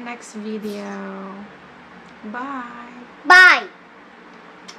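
A young woman speaks close by, warmly and cheerfully.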